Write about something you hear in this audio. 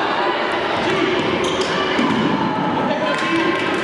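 A ball thuds on a hard floor.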